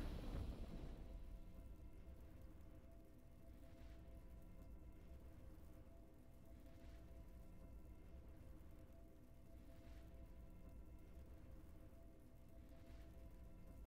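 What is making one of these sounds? Soft, quiet game music plays in the background.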